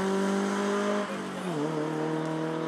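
A rally car engine drops in pitch as the driver shifts gear.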